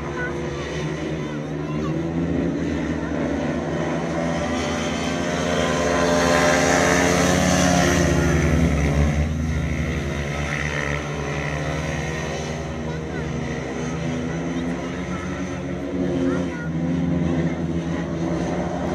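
Motorcycle engines roar around a track, growing louder as the bikes pass close and then fading.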